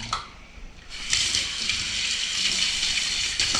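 Tap water runs into a sink.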